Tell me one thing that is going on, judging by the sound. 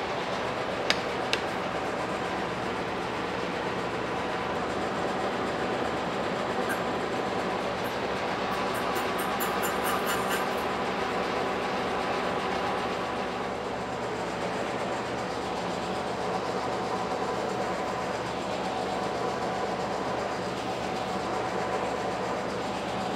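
A milling machine motor hums steadily.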